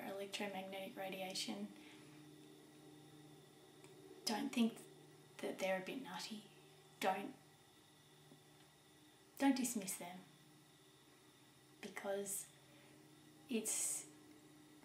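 A middle-aged woman speaks calmly and thoughtfully, close by, with pauses between phrases.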